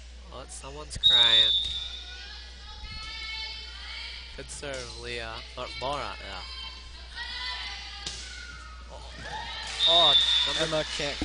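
A referee's whistle blows short and sharp in an echoing gym.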